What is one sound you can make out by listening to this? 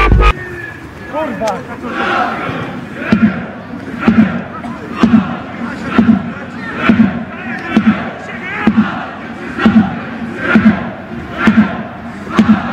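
A crowd of fans chants rhythmically, heard from across an open stadium.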